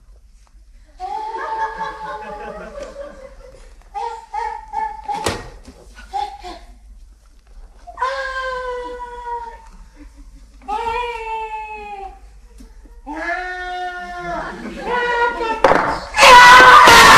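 A woman's voice cries out in long, wavering calls.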